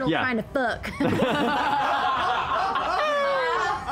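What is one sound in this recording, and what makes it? A young woman speaks excitedly.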